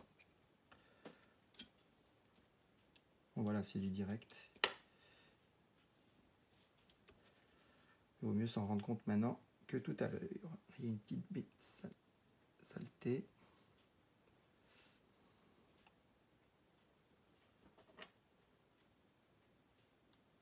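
A small metal tool clicks and scrapes against plastic.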